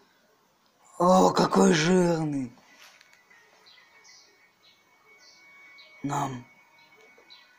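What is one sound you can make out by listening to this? A boy talks loudly over an online call.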